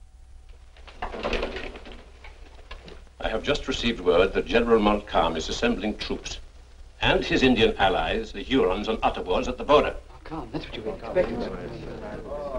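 Several men talk in turn in a calm, serious tone.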